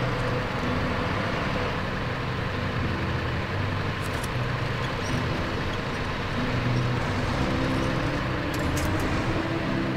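A heavy truck engine rumbles and strains steadily.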